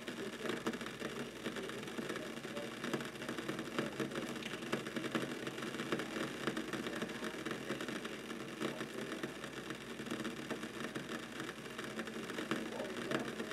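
Water bubbles and gurgles steadily as it boils in a glass vessel.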